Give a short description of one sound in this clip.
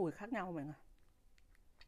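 A young woman speaks briefly and close by.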